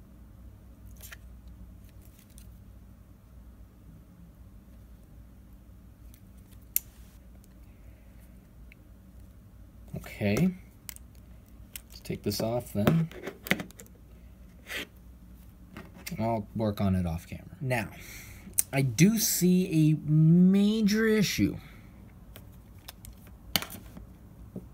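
A phone clicks and taps as it is handled on a table.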